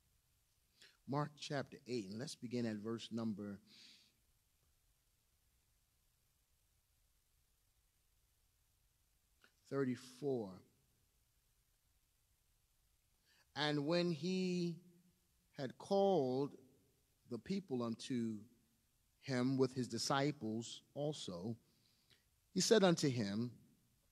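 A man speaks calmly into a microphone, in bursts with pauses.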